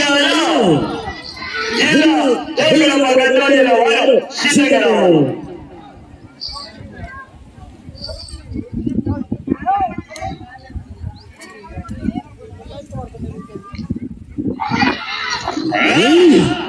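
Men shout loudly with excitement outdoors.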